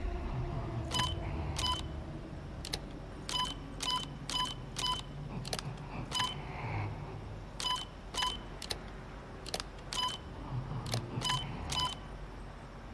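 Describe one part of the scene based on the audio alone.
Short electronic beeps sound again and again.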